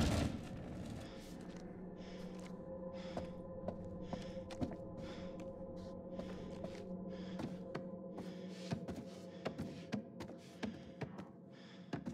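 Footsteps thud and creak on wooden floorboards.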